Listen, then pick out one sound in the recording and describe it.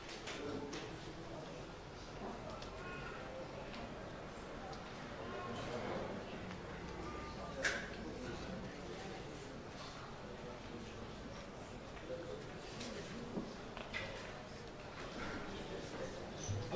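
A crowd of men and women chatters softly indoors.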